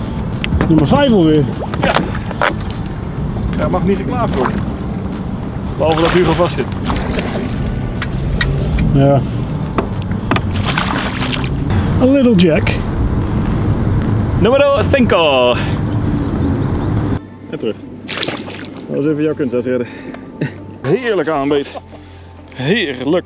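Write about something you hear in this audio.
A man talks with excitement close by, outdoors in wind.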